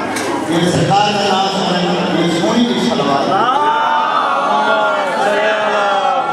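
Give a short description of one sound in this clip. A man chants a melodic recitation loudly into a microphone.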